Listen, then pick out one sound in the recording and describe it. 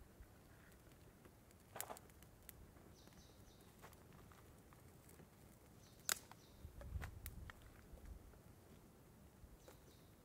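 A small wood fire crackles and pops.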